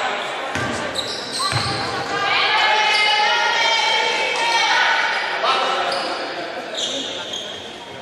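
A crowd murmurs in the stands.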